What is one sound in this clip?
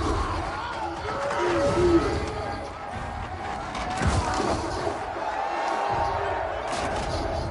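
Wooden staffs clash and knock together in a fight.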